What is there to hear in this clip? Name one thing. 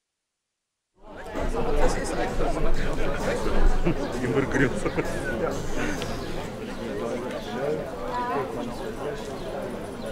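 A crowd of men and women chat outdoors.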